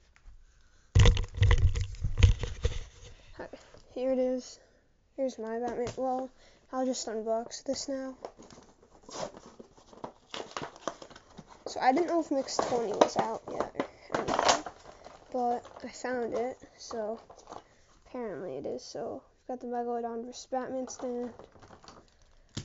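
Plastic packaging rustles and crackles as hands handle it.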